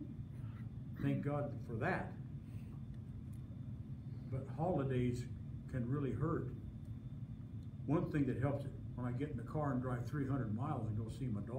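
An elderly man speaks calmly into a nearby microphone, with pauses.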